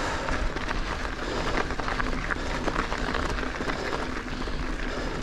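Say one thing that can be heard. Wind rumbles past close by.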